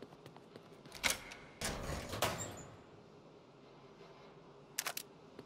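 A metal locker door creaks open and clanks.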